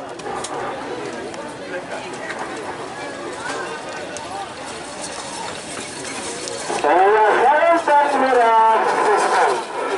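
Cattle hooves pound on dry ground.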